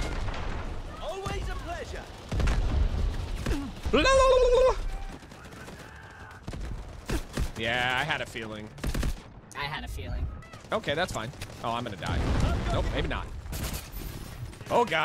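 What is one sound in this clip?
A man shouts excitedly close to a microphone.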